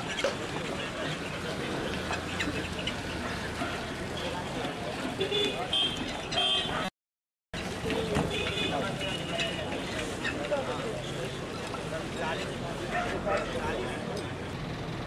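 A crowd of men chatters nearby on a busy street.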